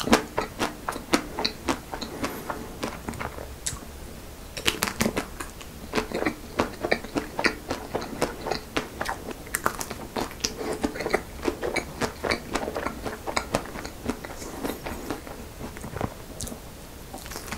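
A young man crunches and bites into crisp ice cream coating close to a microphone.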